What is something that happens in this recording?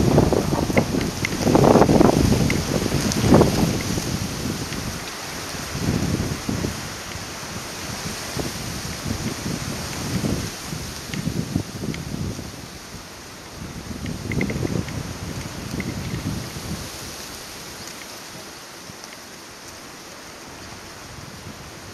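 Small waves lap gently against a floating platform.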